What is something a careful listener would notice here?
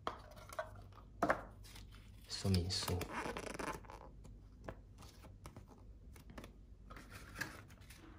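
Paper rustles as a leaflet is unfolded and handled.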